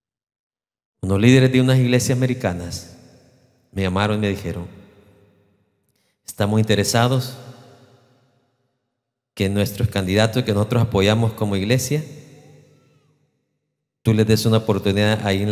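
A man preaches with animation into a microphone, his voice echoing in a large hall.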